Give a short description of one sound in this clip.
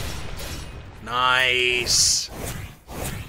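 A bright game jingle rings out as rewards pop up.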